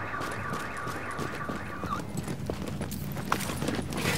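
A door opens.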